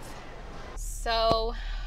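A young woman speaks with animation, close to the microphone.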